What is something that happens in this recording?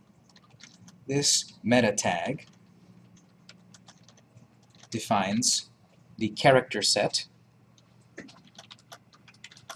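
Keyboard keys click in quick, light taps.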